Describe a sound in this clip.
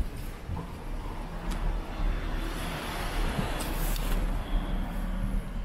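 A car engine hums close by as the car passes.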